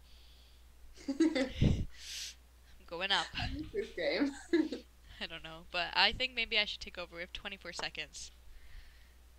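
A second young woman laughs and talks over an online call.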